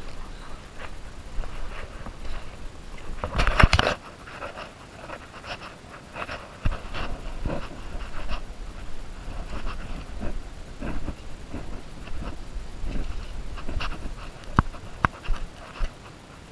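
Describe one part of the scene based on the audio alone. Leaves and branches rustle and brush past.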